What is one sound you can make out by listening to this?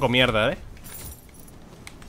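Coins clink as they are picked up.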